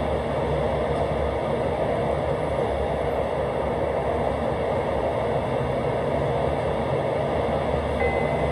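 A stationary train hums steadily.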